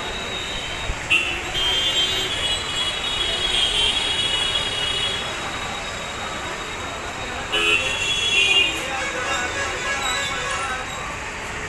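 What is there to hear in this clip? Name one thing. Traffic hums steadily on a wet road below.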